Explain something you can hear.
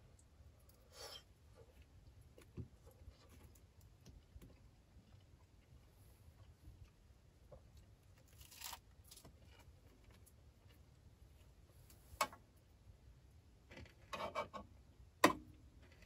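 Cutlery clinks against a metal bowl.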